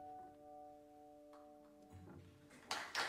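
A piano chord rings out and fades.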